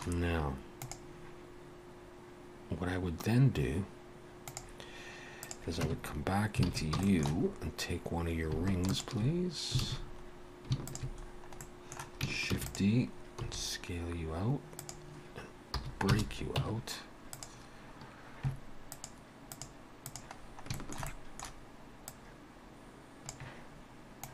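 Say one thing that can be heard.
A mouse clicks now and then.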